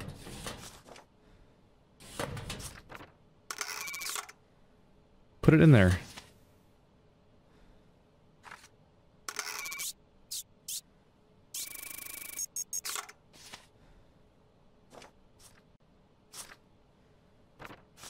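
Paper documents slide and rustle as they are moved around.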